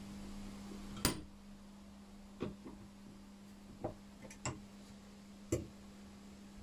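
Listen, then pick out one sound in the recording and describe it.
Wood knocks on a wooden workbench.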